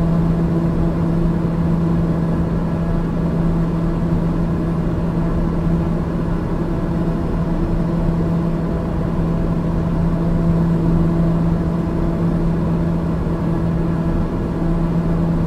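An aircraft engine drones steadily with a low hum.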